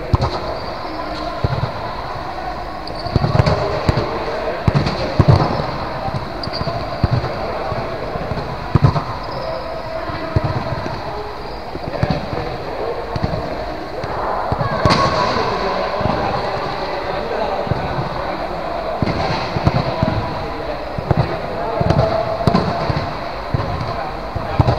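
Young men call out to each other across the echoing hall.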